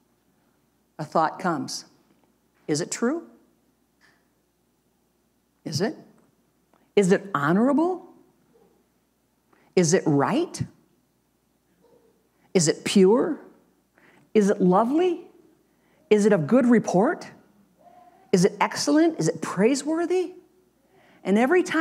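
An elderly woman speaks calmly into a microphone, pausing between phrases.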